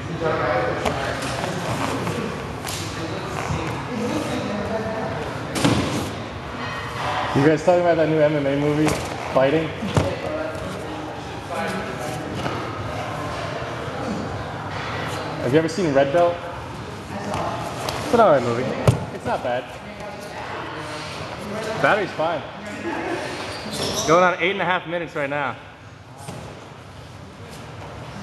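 Bodies thud and shuffle on a padded mat.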